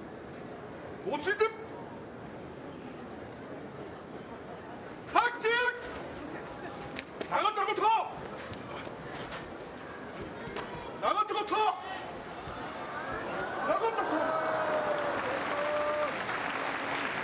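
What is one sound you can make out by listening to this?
A man calls out loudly in short, sung cries.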